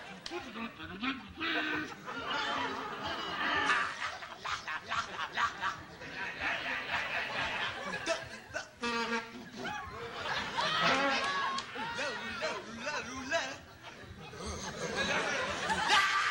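A big band of saxophones and brass plays a lively tune.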